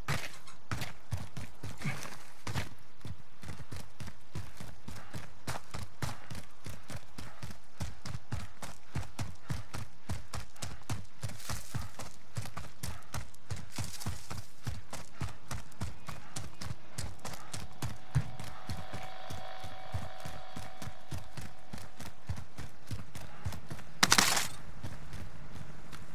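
Quick footsteps run steadily over ground.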